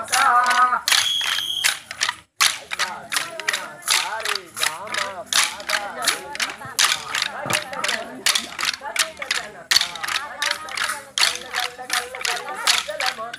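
A group of people sing together outdoors.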